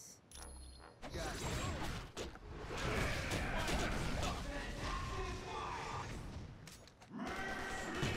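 Fiery blasts roar and crackle.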